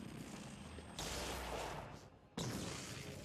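A loud electric blast crackles and booms.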